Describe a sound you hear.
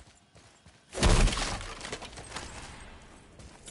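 A wooden chest creaks open with a sudden burst of sound.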